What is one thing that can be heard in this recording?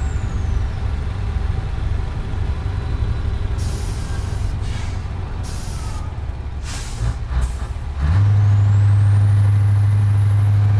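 A truck engine drones steadily and grows louder and deeper near the end.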